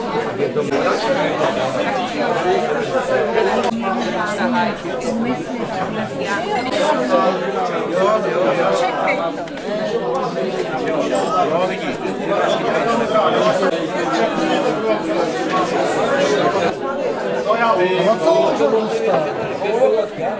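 A crowd of elderly men and women chatter at once at close range.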